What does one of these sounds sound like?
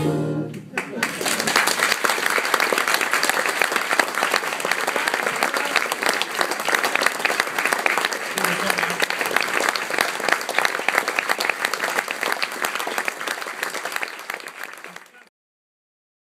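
An audience applauds loudly and steadily in a large hall.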